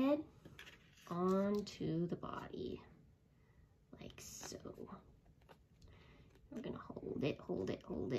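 Paper plates rustle and crinkle as they are handled.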